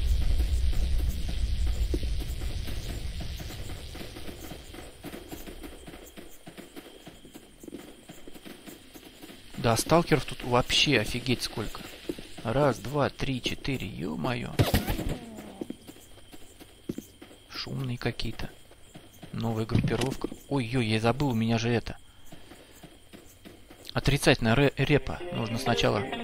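Footsteps crunch on the ground at a steady walking pace.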